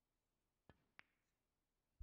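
Snooker balls knock together with a crisp clack.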